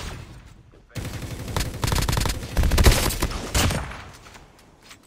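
Rapid gunfire blasts loudly in a burst.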